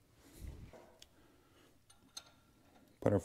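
A wrench clicks against metal engine parts.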